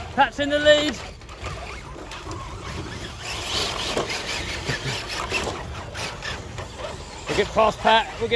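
Plastic tyres crunch over dry leaves and twigs.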